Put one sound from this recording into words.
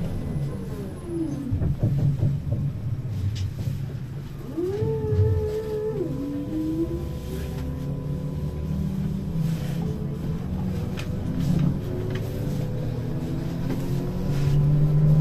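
A bus interior rattles and creaks over the road.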